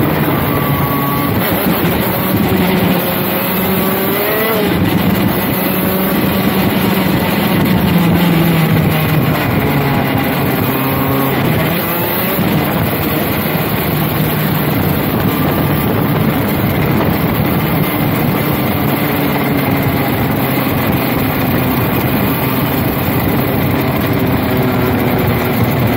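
A kart engine buzzes loudly, its pitch rising and falling as it speeds up and slows down.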